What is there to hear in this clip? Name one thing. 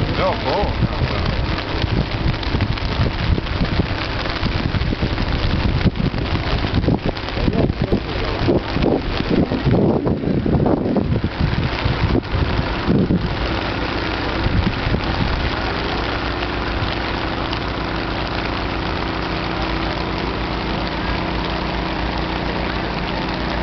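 Floodwater rushes steadily.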